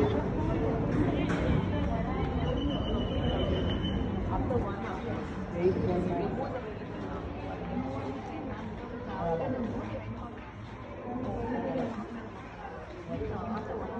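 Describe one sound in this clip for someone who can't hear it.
A young man talks on a phone nearby.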